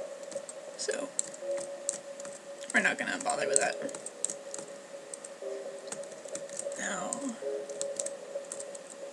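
Soft footsteps patter steadily.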